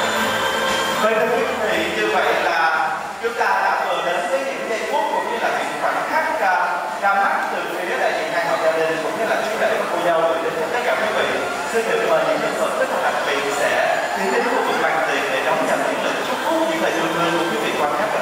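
A young man speaks with animation into a microphone, heard over loudspeakers in a large hall.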